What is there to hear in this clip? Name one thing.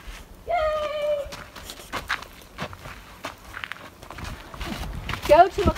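Running footsteps thud on a dirt trail.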